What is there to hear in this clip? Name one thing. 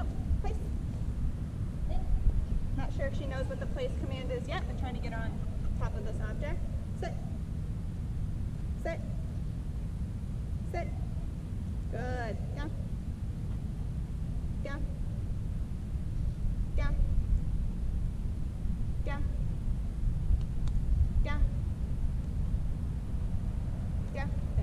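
A woman speaks to a dog with animation, close by outdoors.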